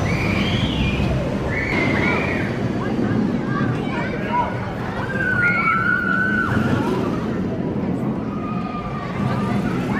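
Riders scream loudly from the coaster.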